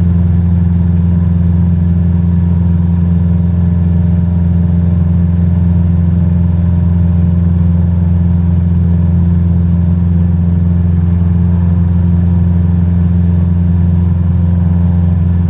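A small propeller plane's engine drones steadily and loudly.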